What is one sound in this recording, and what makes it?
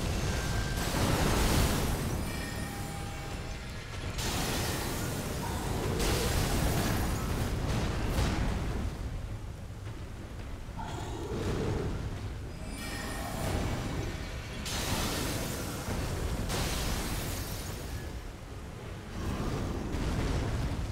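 Magical blasts whoosh and roar loudly.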